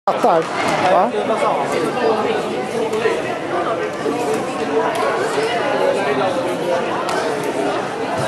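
A ball thuds against a hall floor.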